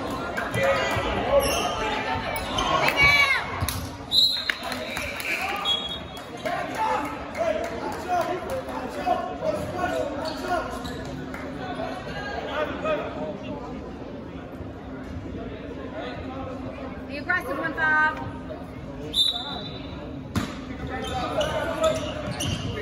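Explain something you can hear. Spectators chatter and call out in an echoing gym.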